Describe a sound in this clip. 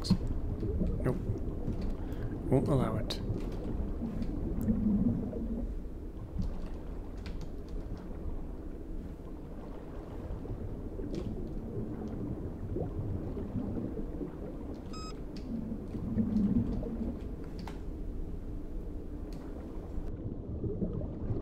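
Water rumbles low and muffled all around, as if heard underwater.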